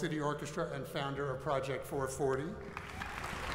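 A middle-aged man speaks into a microphone in a large echoing hall.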